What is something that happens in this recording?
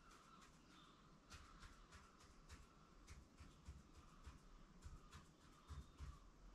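A marker pen squeaks in short, quick strokes on a wall.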